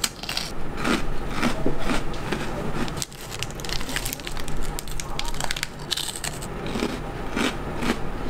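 A plastic snack wrapper crinkles in someone's hands.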